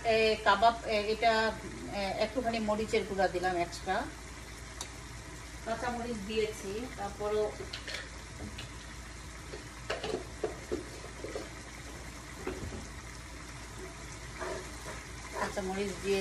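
A wooden spoon scrapes and stirs food in a pan.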